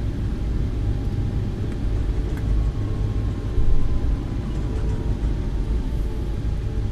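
Jet engines rumble steadily as an airliner taxis.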